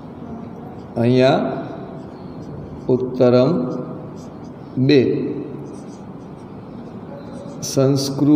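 A man speaks in short, drawn-out phrases.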